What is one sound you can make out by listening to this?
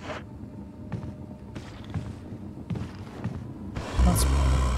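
Footsteps thud slowly on a wooden floor.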